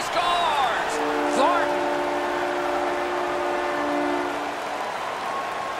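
A goal horn blares loudly and steadily.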